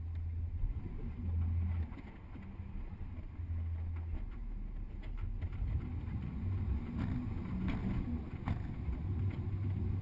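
A vehicle's engine rumbles low and steady as it drives along a city street.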